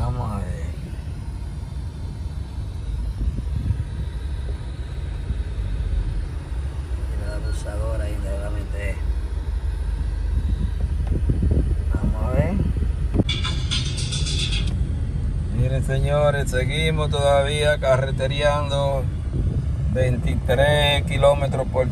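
A car engine hums low and road noise rumbles steadily from inside a car.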